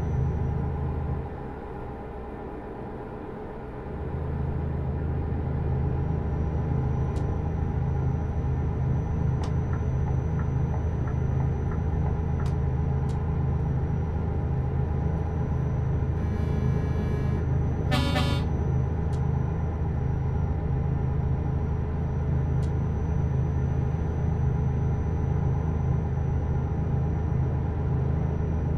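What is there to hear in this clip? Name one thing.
A truck engine drones low and steady.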